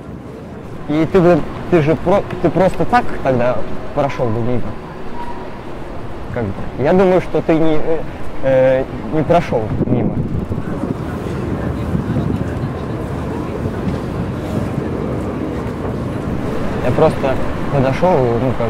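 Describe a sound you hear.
A young man speaks calmly and close by.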